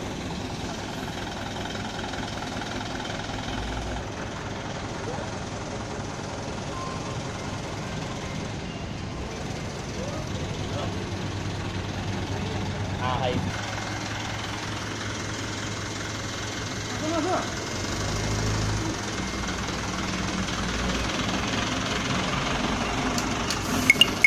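A diesel box truck engine rumbles as the truck moves slowly past.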